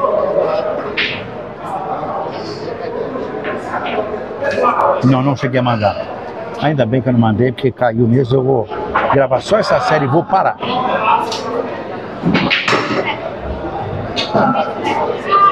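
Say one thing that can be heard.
Pool balls click against each other.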